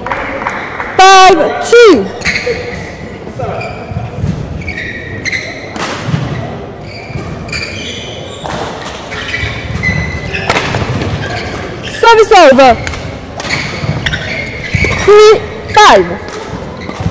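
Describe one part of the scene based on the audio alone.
Sports shoes squeak sharply on a court floor.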